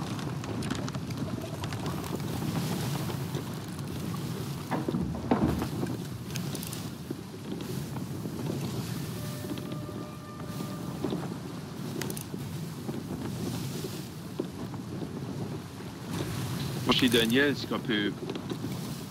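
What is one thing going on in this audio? Wind blows hard over open sea.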